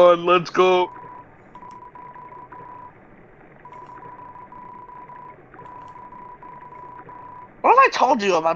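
Soft electronic beeps chirp rapidly in a steady stream.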